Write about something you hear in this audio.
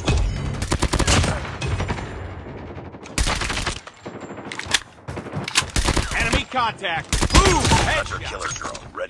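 Rapid rifle gunfire rattles in bursts.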